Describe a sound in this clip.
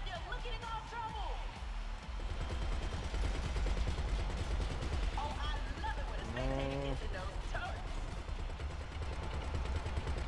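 A helicopter's engine and rotor drone with a steady low rumble.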